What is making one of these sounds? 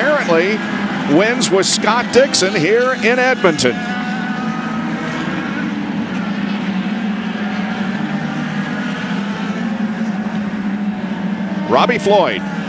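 Racing car engines drone steadily in the distance.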